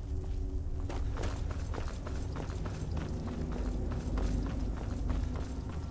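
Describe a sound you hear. Footsteps crunch steadily over soft ground.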